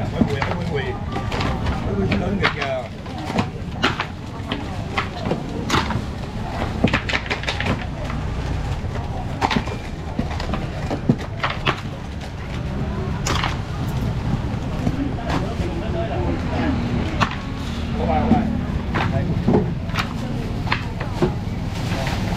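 A busy crowd murmurs and chatters all around.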